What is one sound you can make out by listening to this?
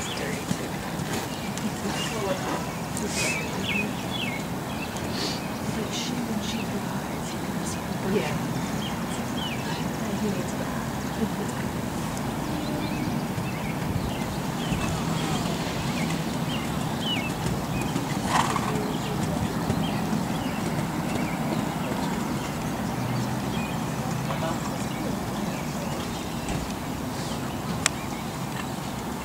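A horse canters on soft sand with muffled hoofbeats.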